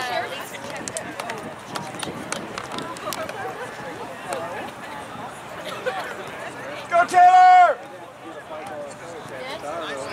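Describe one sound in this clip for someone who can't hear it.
Spectators talk and call out nearby, outdoors.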